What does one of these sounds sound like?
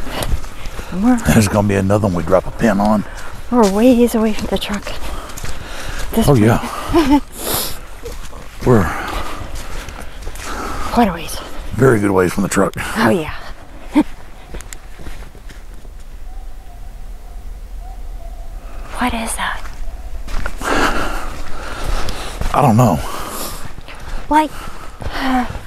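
A man talks in a low voice close by.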